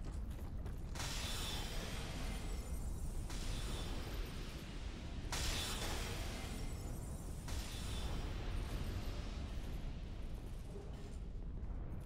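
A magical whooshing burst swells and fades.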